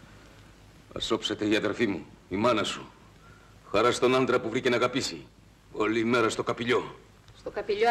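A man speaks in a low, firm voice close by.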